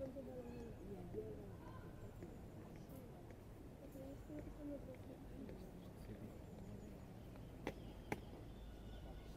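Boots tread and stamp on hard ground close by.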